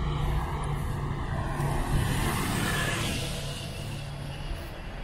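Another vehicle drives past with a rising and fading rush.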